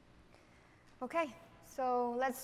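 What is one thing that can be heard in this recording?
A young woman speaks through a microphone.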